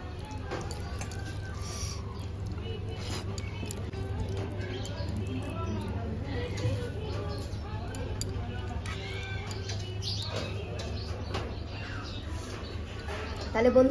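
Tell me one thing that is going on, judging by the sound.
A hand squishes and mixes soft rice.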